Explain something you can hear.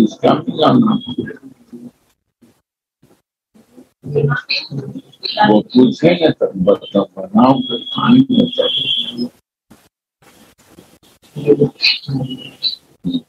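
A middle-aged man talks calmly, heard through an online call.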